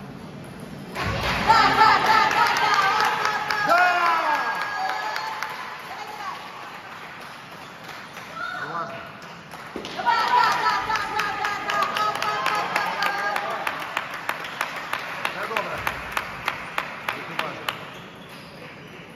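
A ping-pong ball clicks back and forth between paddles and the table in an echoing hall.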